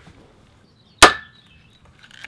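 A crimping tool snaps shut with a sharp click.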